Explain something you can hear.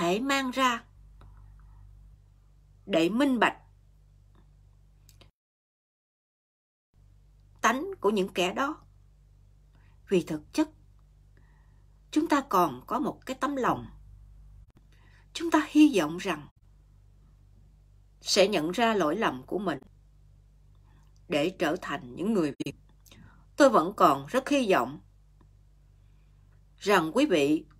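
A woman speaks slowly and earnestly close to a microphone, with pauses between phrases.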